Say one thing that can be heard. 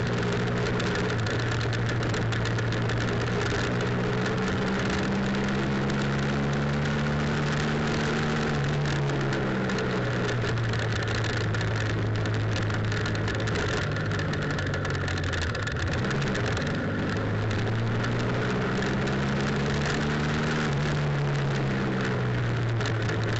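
A motorcycle engine hums steadily close by, rising and falling in pitch as it shifts gears.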